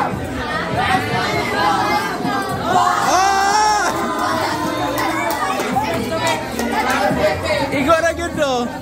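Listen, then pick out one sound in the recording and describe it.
A crowd of teenagers chatters and shouts excitedly close by.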